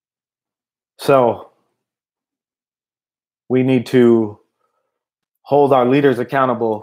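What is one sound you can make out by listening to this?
A man speaks calmly and close to a microphone, in short phrases.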